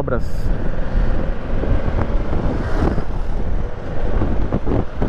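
Wind buffets the microphone of a moving motorcycle.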